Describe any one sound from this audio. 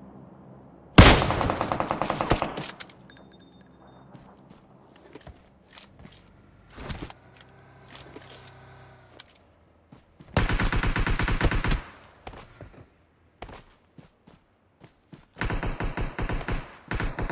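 An automatic rifle fires rapid bursts.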